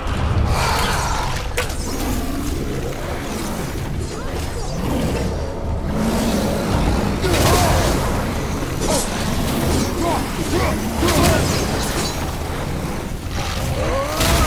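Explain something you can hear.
Fiery creatures snarl and growl.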